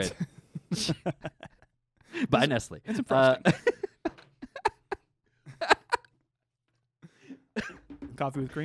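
A young man talks and laughs cheerfully into a close microphone.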